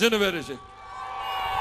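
A man speaks forcefully into a microphone over loudspeakers outdoors.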